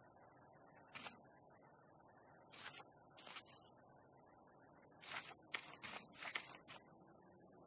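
Paper pages of a book turn with soft flicks.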